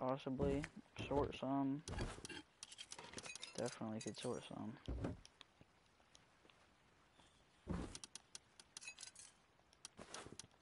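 A wooden box lid clunks open.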